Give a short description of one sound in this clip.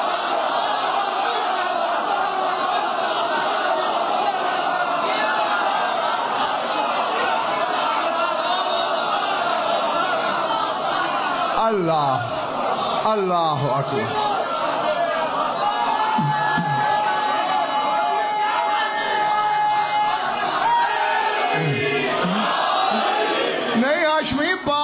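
A crowd of men chants loudly in unison in an echoing hall.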